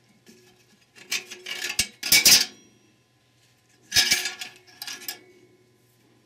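Metal parts clink and scrape close by.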